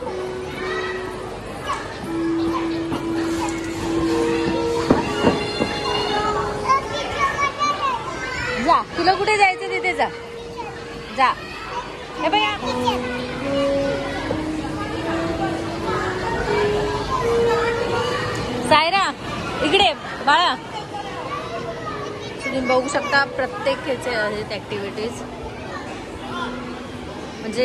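Young children shout and squeal nearby in an echoing indoor space.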